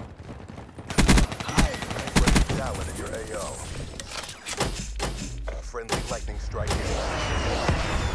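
Automatic gunfire rattles in short, loud bursts.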